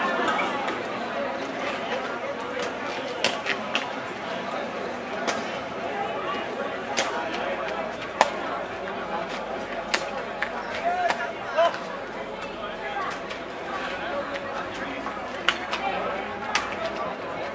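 Running shoes slap on pavement.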